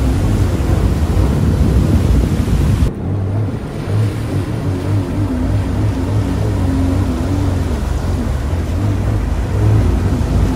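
Water sprays and churns in a wake.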